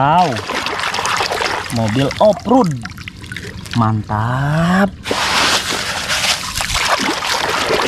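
Water splashes as a hand stirs it.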